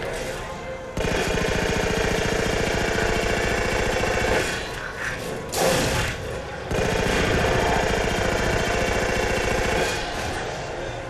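A rapid-fire gun shoots in bursts.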